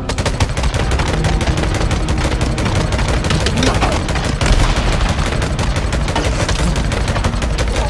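A horde of creatures snarls and shrieks.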